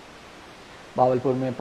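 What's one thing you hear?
A young man speaks clearly into a microphone, close by.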